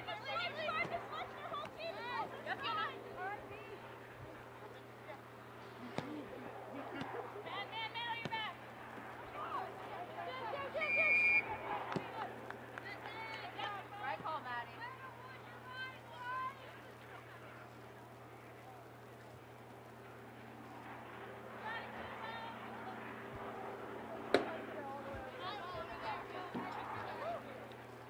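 Young women shout and call out to each other from a distance outdoors.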